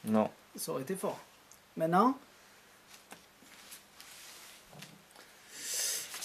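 Playing cards slide and tap on a cloth mat.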